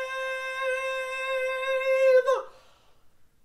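A young man sings one long, loud held note close by.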